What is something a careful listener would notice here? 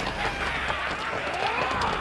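A man shouts fiercely.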